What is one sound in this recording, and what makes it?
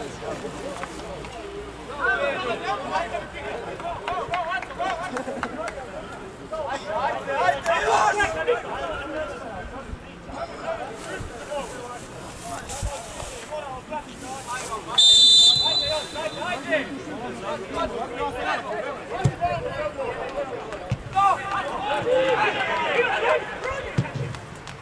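Football players shout and call to each other across an open field.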